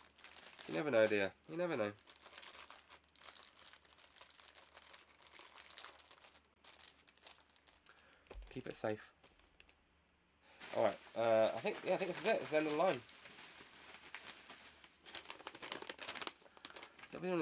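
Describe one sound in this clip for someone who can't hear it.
Plastic packaging rustles and crinkles as it is handled.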